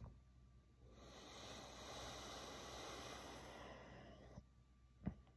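A man exhales heavily close by.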